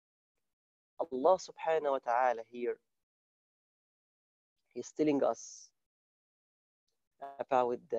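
A man speaks calmly and warmly over an online call, with pauses.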